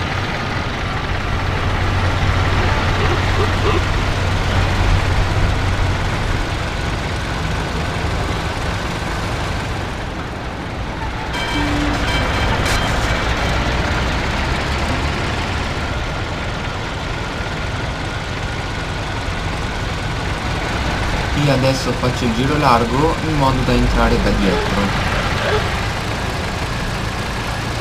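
An old car engine hums steadily as the car drives along.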